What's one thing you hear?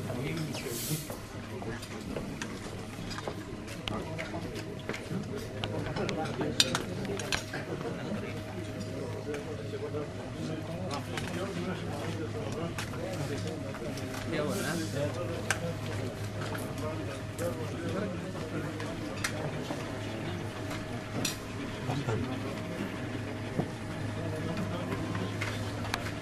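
Many men chat and talk over one another in a room.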